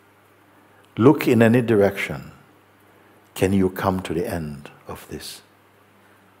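An elderly man speaks calmly and close to a microphone, with pauses.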